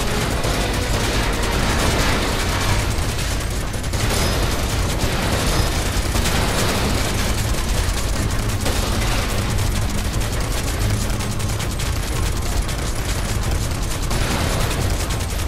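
Metal crates clatter and break apart under gunfire.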